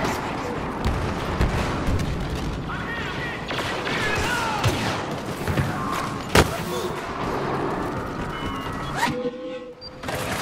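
Heavy footsteps run on a hard floor.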